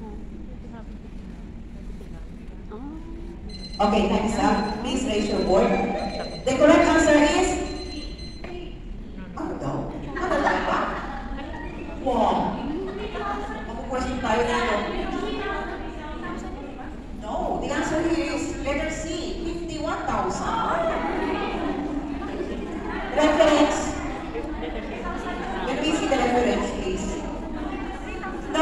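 A crowd of women chatters and calls out.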